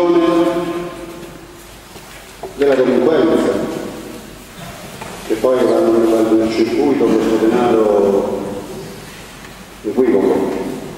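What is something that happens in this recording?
A middle-aged man sings into a microphone, amplified through loudspeakers in an echoing room.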